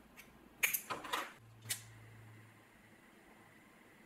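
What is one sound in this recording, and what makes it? A lighter is flicked with a click.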